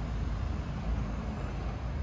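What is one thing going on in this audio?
A van drives by on a nearby street.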